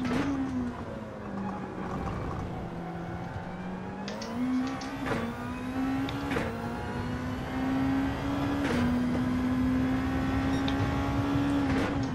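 A racing car engine revs higher and higher, dropping briefly with each gear change.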